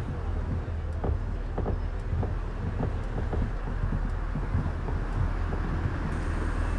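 Footsteps tap on a hard floor as passengers board a bus.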